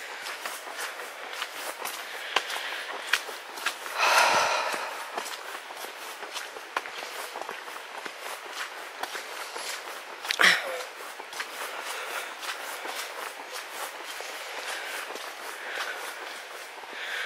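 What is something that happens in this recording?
Footsteps crunch and rustle through dry leaves and gravel at a steady walking pace.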